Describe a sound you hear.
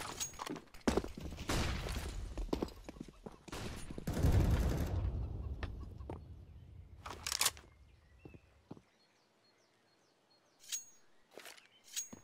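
Footsteps run across hard ground.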